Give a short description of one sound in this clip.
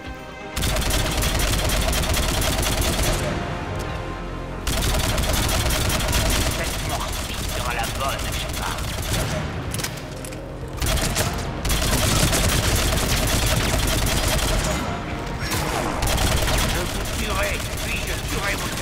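Energy blasts crackle and zap.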